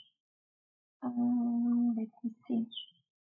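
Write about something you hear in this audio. A woman speaks calmly and close to a microphone, in short bursts.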